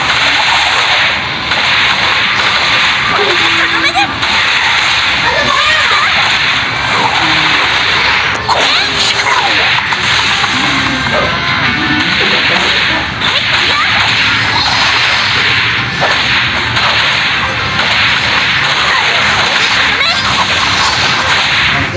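Energy blasts and sword slashes whoosh and crackle in rapid bursts.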